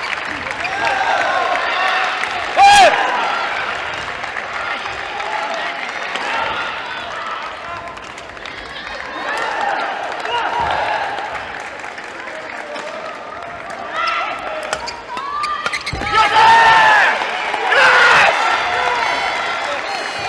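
Young men shout and call out loudly in an echoing hall.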